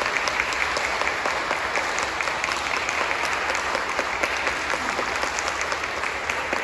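Applause rings out in a large echoing hall.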